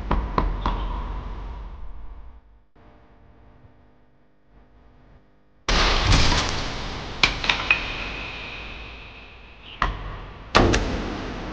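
An axe splits wood with sharp, ringing chops.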